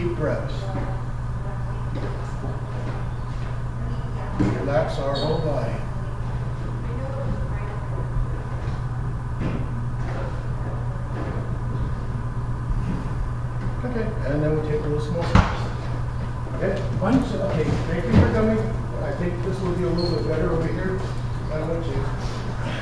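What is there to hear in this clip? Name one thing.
Elderly women talk in a large echoing room.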